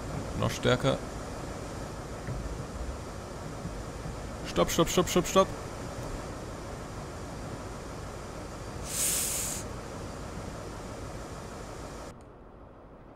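A train engine rumbles steadily as the train rolls along and slows down.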